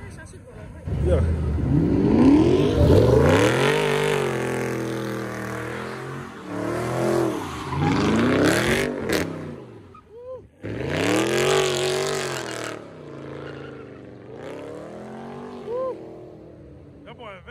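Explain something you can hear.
A car engine revs hard, rising and falling in bursts.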